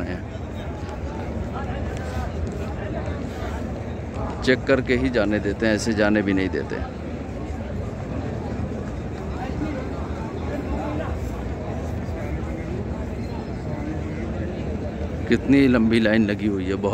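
A crowd murmurs outdoors in the distance.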